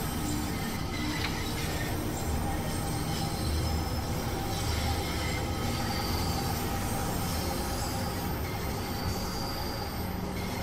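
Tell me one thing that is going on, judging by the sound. A train rumbles steadily through a tunnel, picking up speed.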